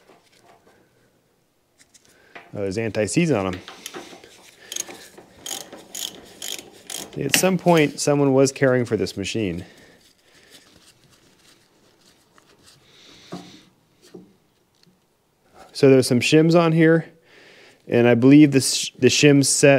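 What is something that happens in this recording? Metal tools clink and knock against metal.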